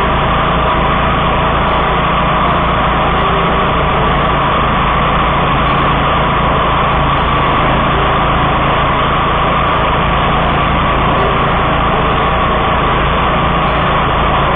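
Tall grass swishes and crackles under the mower.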